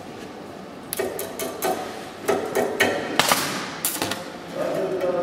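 An angle grinder grinds metal in short, harsh bursts.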